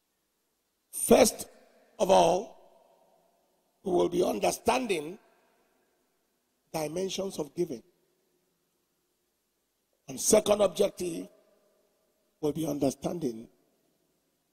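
A man preaches with animation through a microphone, in short phrases with pauses, echoing in a large hall.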